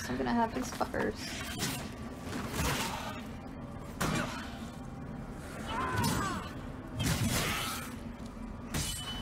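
A monster roars and growls loudly.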